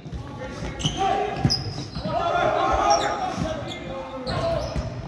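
Young men shout calls to each other across the court.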